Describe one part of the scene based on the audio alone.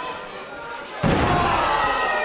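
A wrestler slams heavily onto the ring mat with a loud thud.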